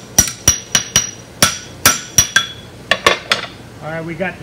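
A hammer strikes hot metal on an anvil with sharp ringing blows.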